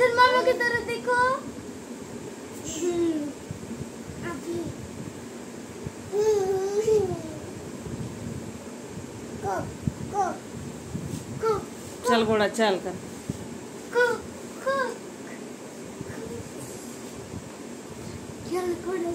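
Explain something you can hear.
A young girl laughs and squeals close by.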